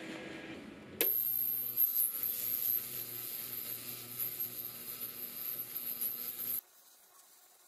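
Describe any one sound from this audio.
An ultrasonic cleaner hums with a high, steady whine.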